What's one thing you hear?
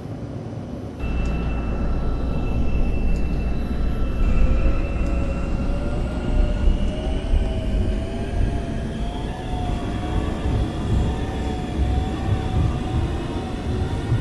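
Train wheels rumble on the rails.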